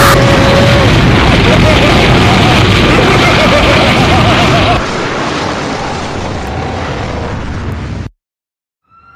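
A huge explosion roars and rumbles.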